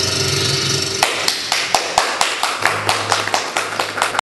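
A young man taps out a quick, even rhythm with his hands.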